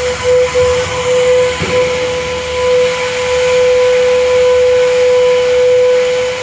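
A small robot's electric motor whines steadily.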